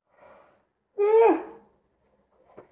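A young woman yawns loudly.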